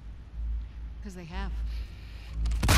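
A young woman speaks.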